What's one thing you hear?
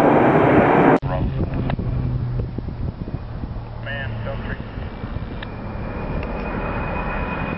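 A large plane's engines drone steadily at a distance.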